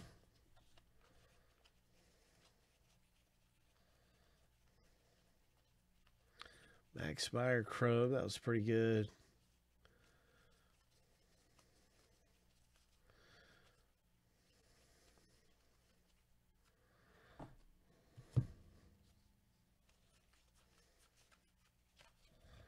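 Trading cards slide and flick against each other as they are sorted by hand.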